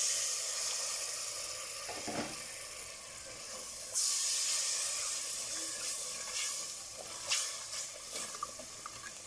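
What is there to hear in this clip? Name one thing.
A spoon scrapes and knocks against the inside of a metal pot.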